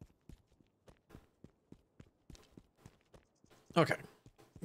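Footsteps tap along the ground at a steady walking pace.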